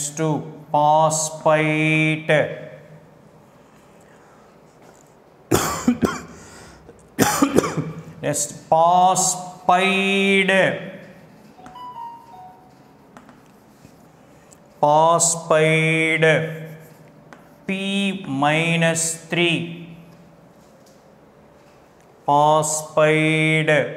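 A man speaks slowly and clearly, as if teaching, through a microphone.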